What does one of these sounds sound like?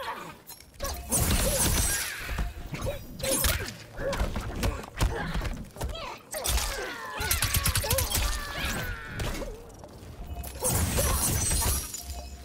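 Energy blasts whoosh and crackle in a video game fight.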